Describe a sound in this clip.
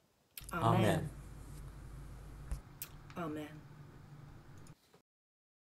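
A woman reads aloud calmly, close by.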